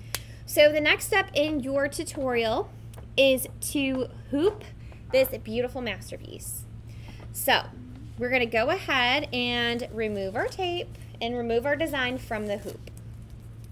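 A young woman talks calmly and clearly, close to a microphone.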